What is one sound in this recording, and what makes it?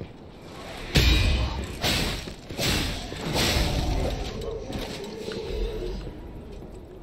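Blades clash and strike heavily in a fight.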